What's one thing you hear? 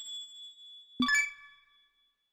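A game button clicks with a short chime.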